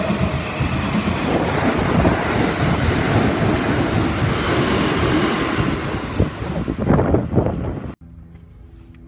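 An electric train passes close by, its wheels rumbling on the rails.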